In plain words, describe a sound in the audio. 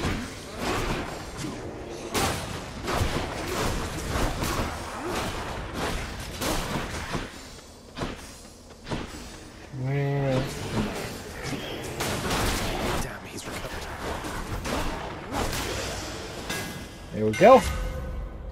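Blades slash and clash in quick, busy fighting.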